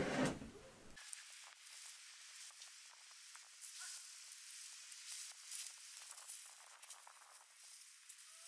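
Dry stalks rustle in a large bundle carried on a man's back.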